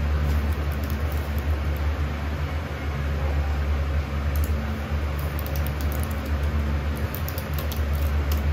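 Keys on a computer keyboard click softly in quick bursts.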